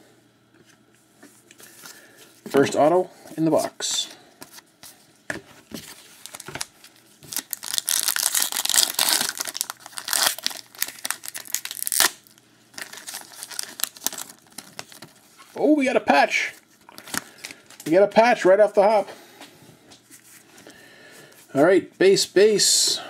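Gloved hands shuffle and flick through trading cards.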